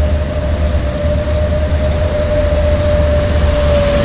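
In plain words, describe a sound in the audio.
A motorcycle engine buzzes past.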